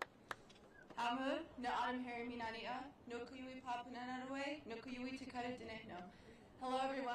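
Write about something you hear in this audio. A young woman speaks calmly through a microphone and loudspeakers.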